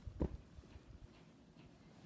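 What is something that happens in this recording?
Fabric rustles softly as a plush toy is handled.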